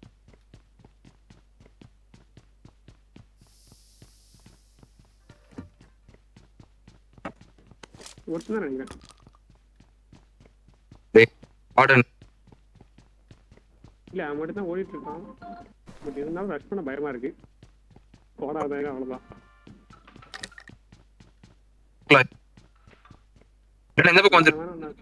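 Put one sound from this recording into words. Quick footsteps run across a wooden floor.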